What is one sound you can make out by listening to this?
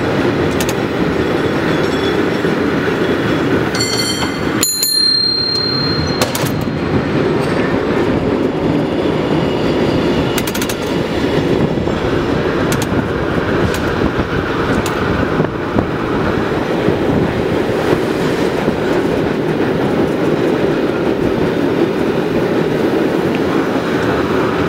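A cable car rumbles and rattles steadily along its rails.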